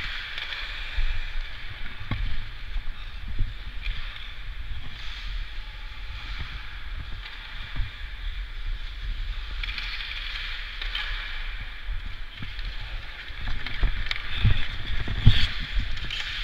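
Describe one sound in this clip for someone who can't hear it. Hockey sticks clack against the puck and the ice now and then.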